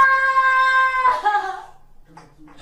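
A woman cries out loudly in a long, high wail.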